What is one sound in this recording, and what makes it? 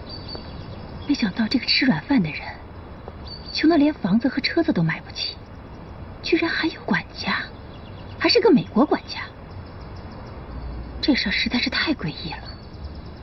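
A middle-aged woman speaks with surprise and animation.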